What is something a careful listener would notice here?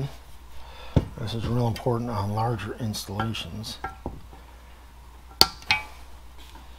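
Metal parts click and clank against each other.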